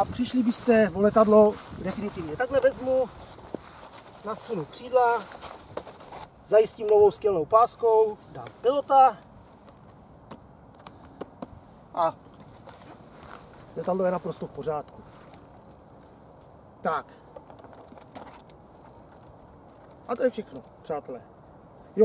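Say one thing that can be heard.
A man talks calmly close by, in short bursts.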